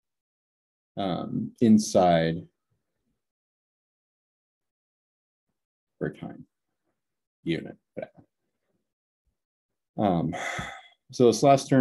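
A young man speaks calmly in short phrases through a microphone.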